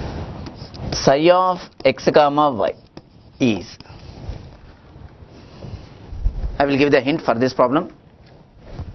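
A man speaks in a lecturing tone, close to a microphone.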